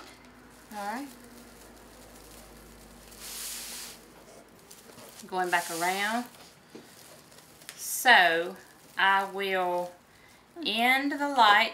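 Decorative mesh rustles and crinkles as it is handled.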